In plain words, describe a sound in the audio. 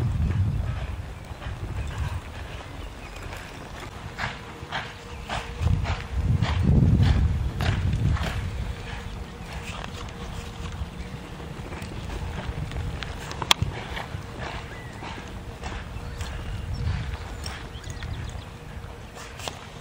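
Horse hooves thud on soft dirt.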